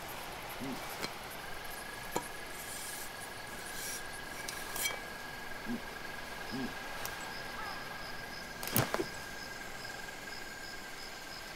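A blade swishes through the air again and again.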